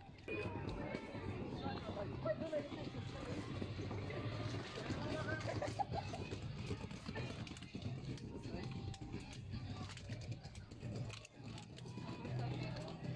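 A crowd of diners chatters and murmurs nearby outdoors.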